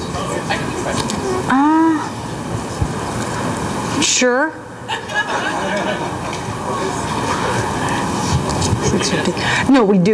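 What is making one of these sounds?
A middle-aged woman speaks calmly into a microphone, heard through loudspeakers outdoors.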